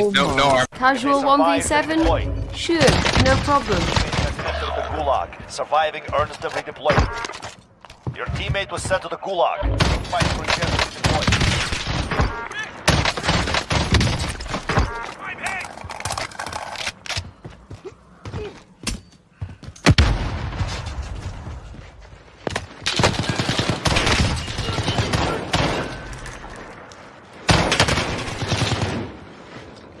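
Gunshots fire in short rapid bursts.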